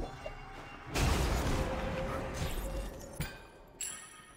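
A magical blast bursts and crackles in a game.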